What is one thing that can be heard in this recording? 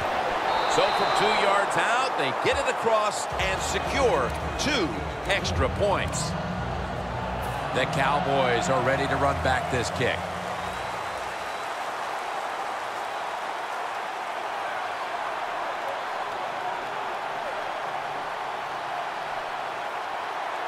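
A large stadium crowd roars steadily in the background.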